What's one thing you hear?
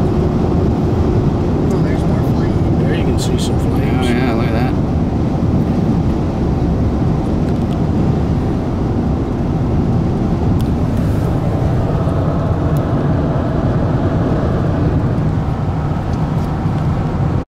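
Wind and road noise rumble steadily inside a moving car.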